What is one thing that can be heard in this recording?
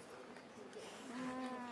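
A young girl sings through a microphone.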